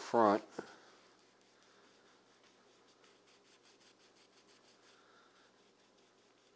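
A gloved hand rubs a cloth back and forth over wood.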